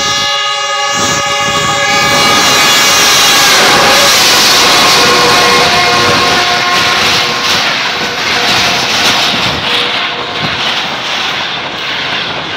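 A passenger train roars and clatters past close by.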